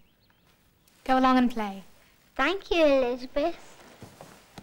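A young boy speaks, close by.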